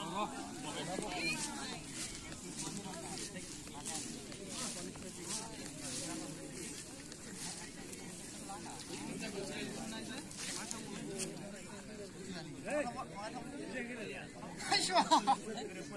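Young men talk and call out outdoors in an open field.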